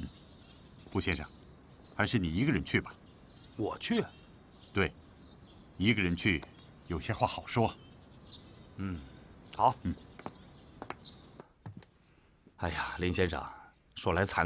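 Another middle-aged man answers calmly, close by.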